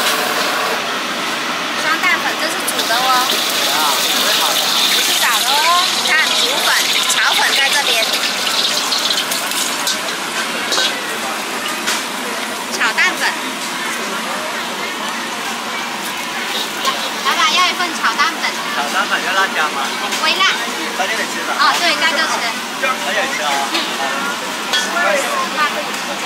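A metal ladle clinks and scrapes against a pan.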